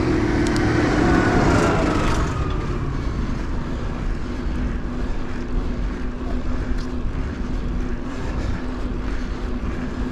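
Wind rushes past a moving bicycle outdoors.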